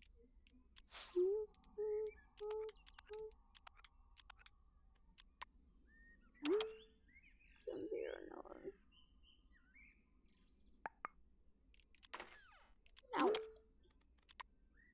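Short electronic chimes sound as menus open.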